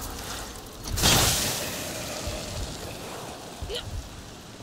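An axe strikes with a heavy thud.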